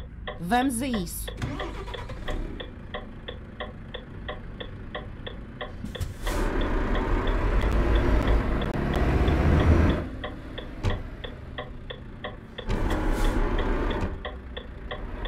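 A truck's indicator ticks at an even pace.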